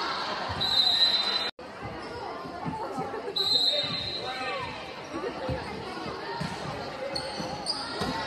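A volleyball is struck by hand.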